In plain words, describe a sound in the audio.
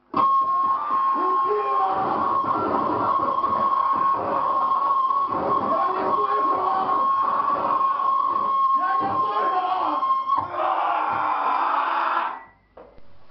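A band plays loud live music through amplifiers.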